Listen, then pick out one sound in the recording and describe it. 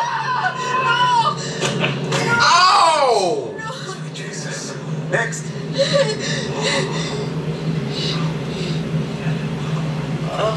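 A young man exclaims in disbelief close by.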